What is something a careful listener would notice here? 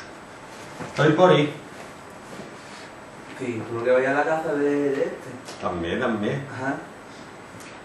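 A man speaks calmly, explaining.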